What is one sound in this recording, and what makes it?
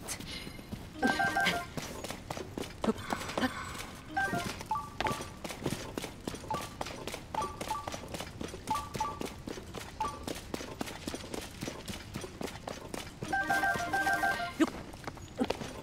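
A bright chime rings as items are picked up.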